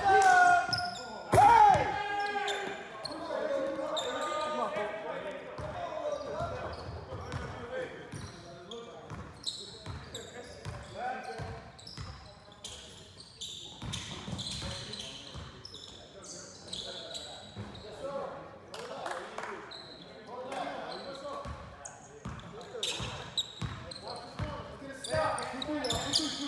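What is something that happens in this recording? Men shout to each other in a large echoing gym.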